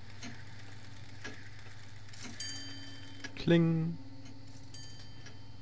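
A pendulum clock ticks slowly and steadily.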